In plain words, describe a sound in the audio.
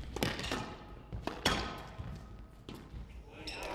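A squash ball smacks hard against the walls, echoing in a large hall.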